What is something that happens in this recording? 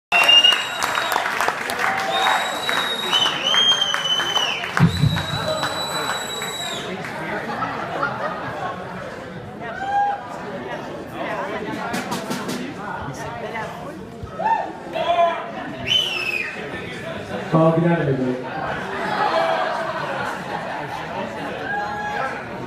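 A band plays live in a room.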